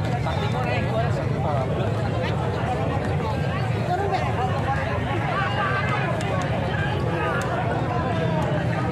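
A crowd of men and women chatters loudly outdoors.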